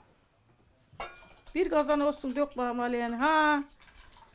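Thick liquid pours and splashes softly into a bowl.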